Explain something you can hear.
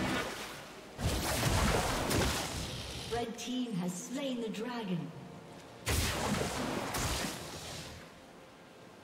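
Magical whooshing blasts of game spell effects burst out loudly.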